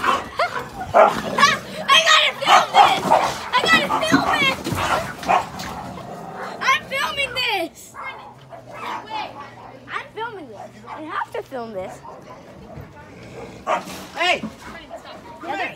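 A dog whines and yelps excitedly close by.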